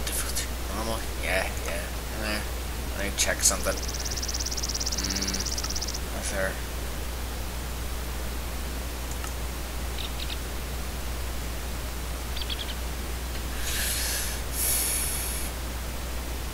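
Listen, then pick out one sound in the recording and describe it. Menu buttons click softly, now and then.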